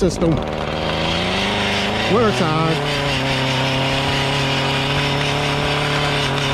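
A string trimmer's motor whines loudly and steadily, revving up and down now and then.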